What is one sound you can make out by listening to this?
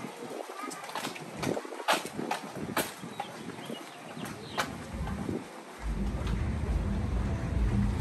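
Footsteps tap on a pavement nearby.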